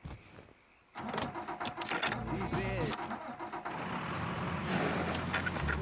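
An engine starts and idles with a low rumble.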